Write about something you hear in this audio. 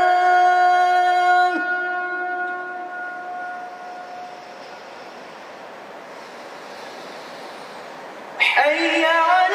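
A boy sings a long, drawn-out call loudly through a microphone, then starts a new phrase.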